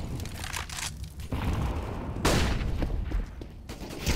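A flashbang bursts with a loud bang.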